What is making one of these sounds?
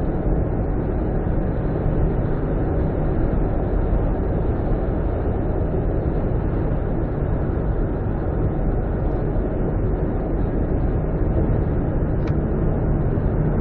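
Road and engine noise rumble steadily from inside a moving car.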